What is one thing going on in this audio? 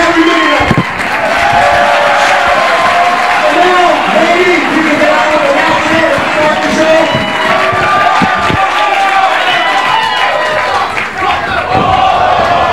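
A man announces loudly through a microphone and loudspeaker in an echoing hall.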